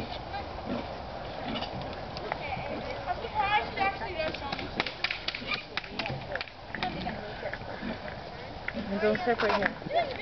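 Young women shout and laugh outdoors.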